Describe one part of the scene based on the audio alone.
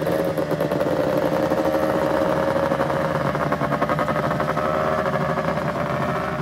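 A snowmobile engine idles loudly close by with a steady buzzing drone.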